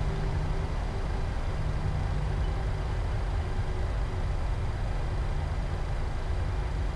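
Jet engines rumble steadily as an airliner taxis.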